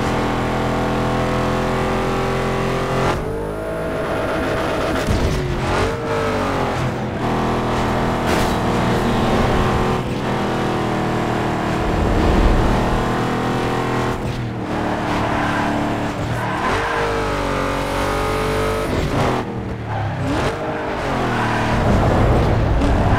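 A car engine roars at high revs, rising and falling as gears shift.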